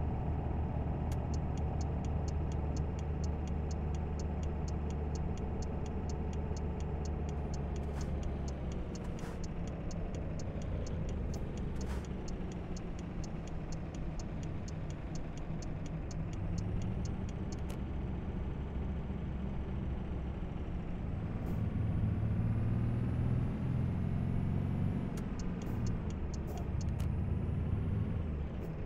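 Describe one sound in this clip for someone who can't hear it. A truck engine drones steadily, rising in pitch as it speeds up.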